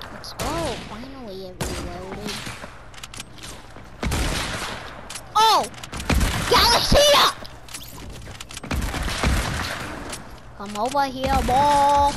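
Gunshots ring out in bursts.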